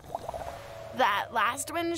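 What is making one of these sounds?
A young woman speaks casually.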